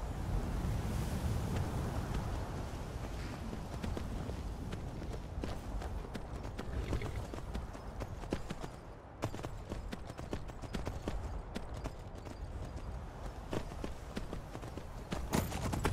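A horse gallops, its hooves clattering on a stone path.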